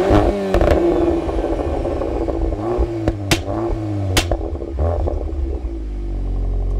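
A sports car engine revs hard and roars through its exhaust.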